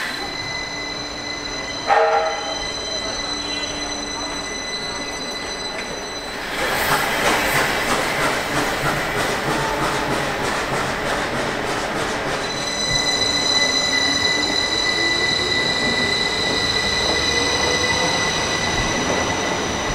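A train rolls slowly and rumbles past close by.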